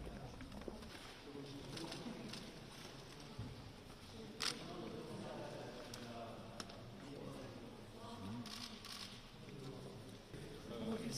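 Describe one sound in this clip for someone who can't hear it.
A group of men and women murmur and talk quietly indoors.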